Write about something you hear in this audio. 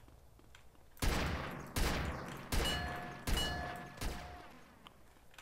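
Gunshots ring out several times in quick succession.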